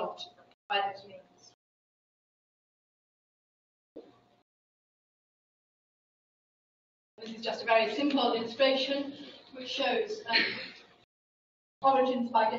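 A woman speaks calmly into a microphone in a large room, with pauses.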